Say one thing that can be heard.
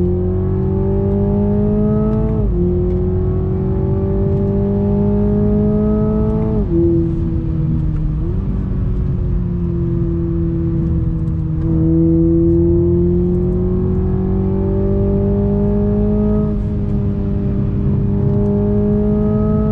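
A car engine hums steadily, its pitch rising as it speeds up and dropping at each gear change.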